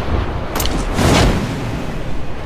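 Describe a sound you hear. A parachute snaps open.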